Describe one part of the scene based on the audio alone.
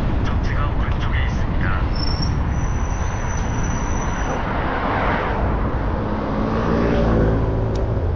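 Cars drive by on a nearby street.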